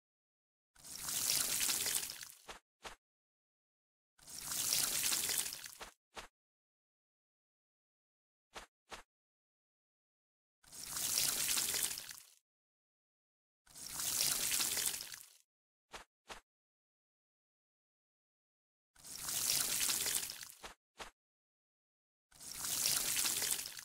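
Water splashes from a watering can in short bursts.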